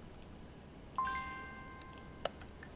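A soft chime rings as a message pops up.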